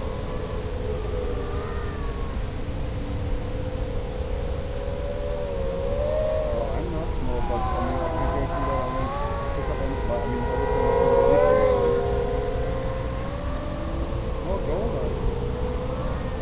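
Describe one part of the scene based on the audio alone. Wind rushes past in a low steady roar.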